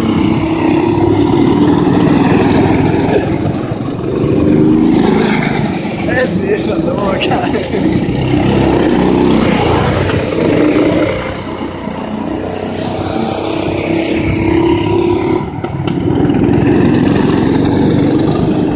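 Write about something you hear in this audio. Go-kart engines buzz and drone loudly, rising and falling as the karts speed around.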